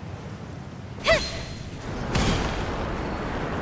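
A magical slash whooshes and crackles with a bright burst.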